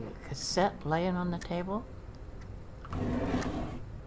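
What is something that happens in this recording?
A drawer slides open.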